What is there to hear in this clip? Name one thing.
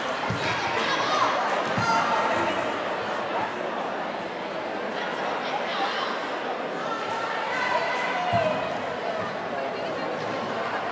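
Shoes squeak on a hard indoor floor.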